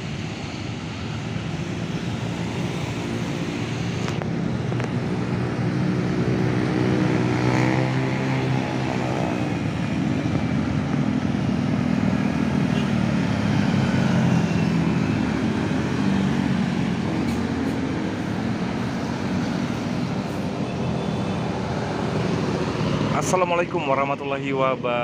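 Motorbikes buzz past close by.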